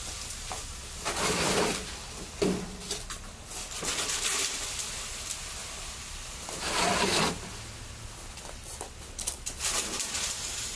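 Cement pours and rustles down a metal chute.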